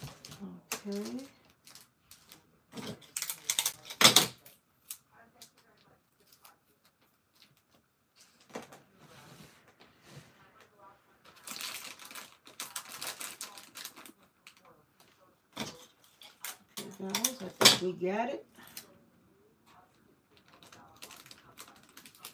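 Plastic candy wrappers crinkle as hands pack them into a bucket.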